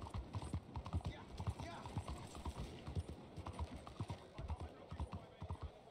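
Horse hooves clop steadily on cobblestones.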